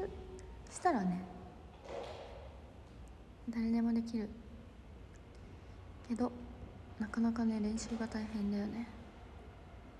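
A young woman talks softly and casually close to a phone microphone, with pauses.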